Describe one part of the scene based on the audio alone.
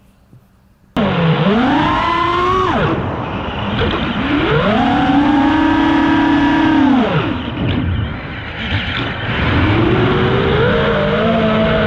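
A small drone's propellers whine loudly, rising and falling in pitch.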